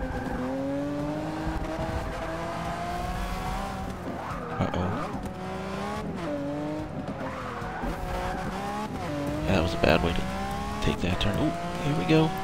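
A V12 supercar engine revs hard, accelerating through the gears.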